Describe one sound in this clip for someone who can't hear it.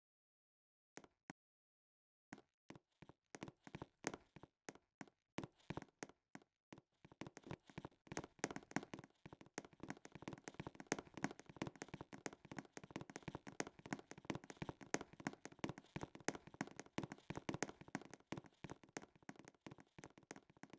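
Footsteps tap on hard pavement.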